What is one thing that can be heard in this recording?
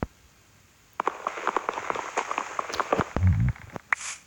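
A block of wood is chopped with a run of knocks.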